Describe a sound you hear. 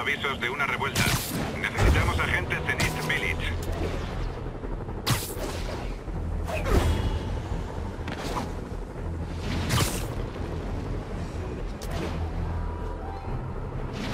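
Wind rushes loudly past in repeated whooshes as a figure swings between tall buildings.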